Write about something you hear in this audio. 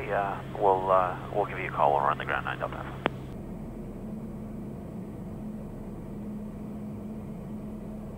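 A plane's engine drones steadily.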